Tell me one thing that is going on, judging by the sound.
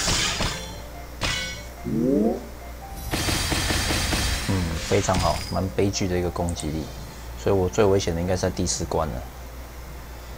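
Mobile puzzle game sound effects chime and burst as gem combos attack.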